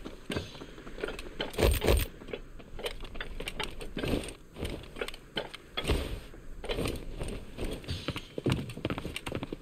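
Footsteps patter quickly across roof tiles.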